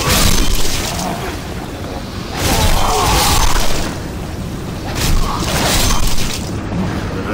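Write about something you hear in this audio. Heavy blade swings whoosh and strike with loud bursts.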